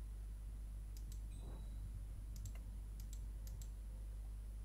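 Short soft clicks and chimes sound as a game menu opens and closes.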